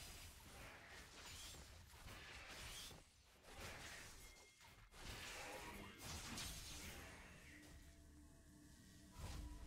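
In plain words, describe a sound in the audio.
Game sound effects whoosh and clash.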